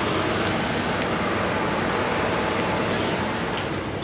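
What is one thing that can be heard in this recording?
A metal door handle clicks as a door opens.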